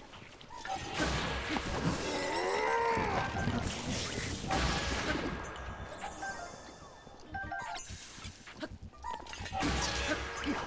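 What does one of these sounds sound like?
An electric blast crackles and bursts.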